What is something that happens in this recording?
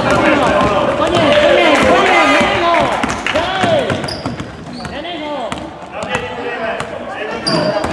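A basketball bounces repeatedly on a wooden floor.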